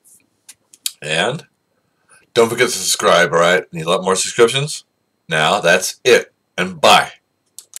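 An older man talks calmly and close to the microphone.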